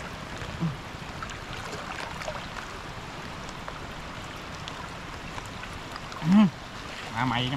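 Water sloshes as a man wades through it.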